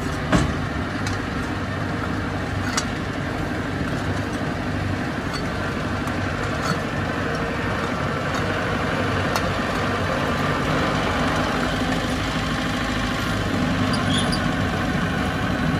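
A bulldozer engine rumbles steadily nearby.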